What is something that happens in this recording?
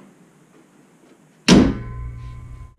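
A car hood slams shut.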